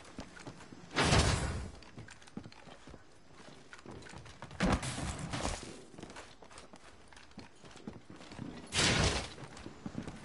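Gunfire bursts out in short, loud volleys.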